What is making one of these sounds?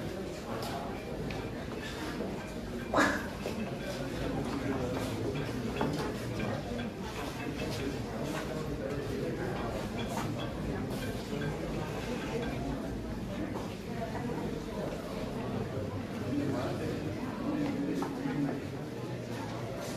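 A crowd of people murmurs and chatters nearby in a large echoing hall.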